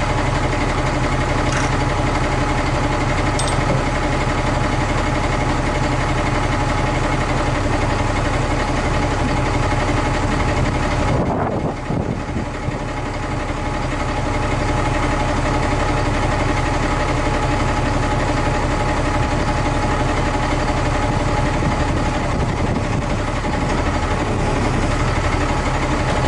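A crane's hydraulics whine as the arm moves.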